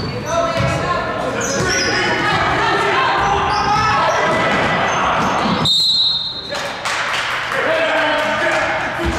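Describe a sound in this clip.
Children and adults shout and cheer in a large echoing hall.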